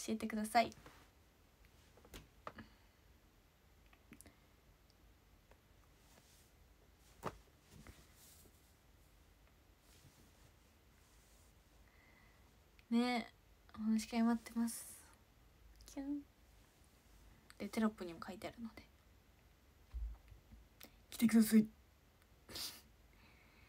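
A young woman talks softly and casually, close by.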